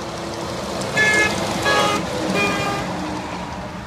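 A large truck blasts its air horn loudly.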